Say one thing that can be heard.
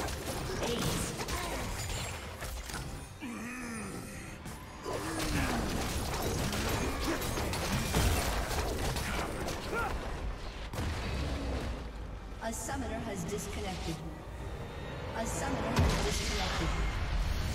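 Spell blasts and clashing strikes from a video game battle boom and crackle.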